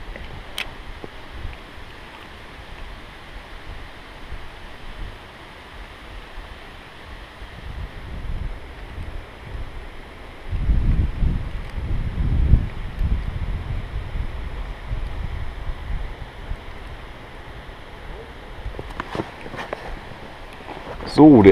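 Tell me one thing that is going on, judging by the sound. A fishing reel clicks and whirs as the line is wound in.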